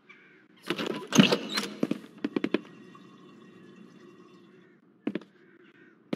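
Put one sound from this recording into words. Footsteps climb wooden stairs indoors.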